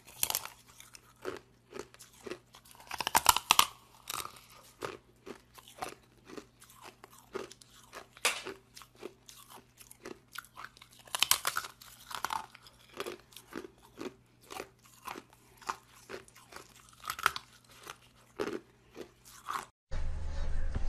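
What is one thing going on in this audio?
A woman crunches loudly on something hard and brittle, close up.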